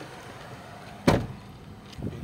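A car door slams shut.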